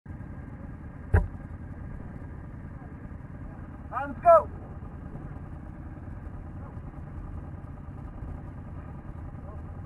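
Quad bike engines idle nearby with a steady low rumble.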